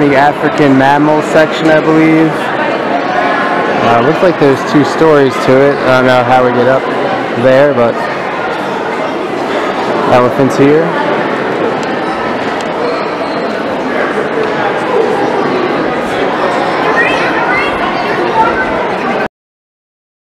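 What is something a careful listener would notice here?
A crowd of visitors chatters in a large echoing hall.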